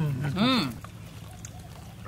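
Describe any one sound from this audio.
A man slurps a drink loudly.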